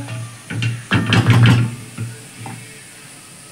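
A metal spoon scrapes and stirs food in a pan.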